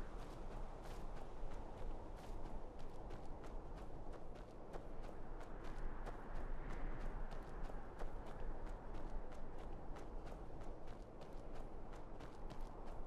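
Armoured footsteps crunch steadily on rough ground.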